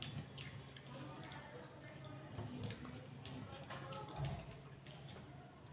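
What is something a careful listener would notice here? A woman eats, chewing close by.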